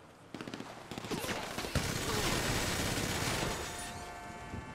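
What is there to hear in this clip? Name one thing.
A heavy machine gun fires a long rapid burst.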